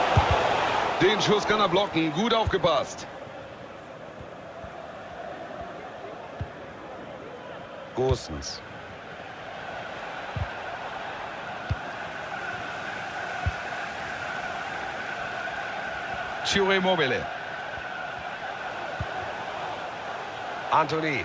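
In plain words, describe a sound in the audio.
A large crowd murmurs and chants steadily in a big stadium.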